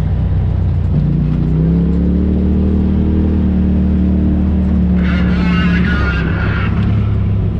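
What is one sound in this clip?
An engine revs up and holds a higher pitch for a few seconds.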